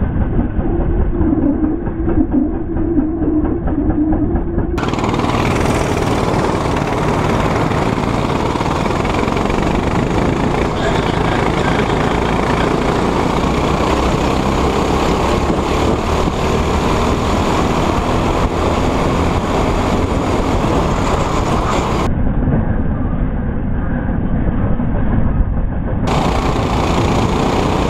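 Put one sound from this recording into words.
A go-kart engine drones loudly and close by.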